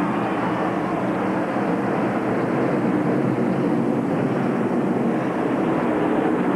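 A large crowd cheers in the stands.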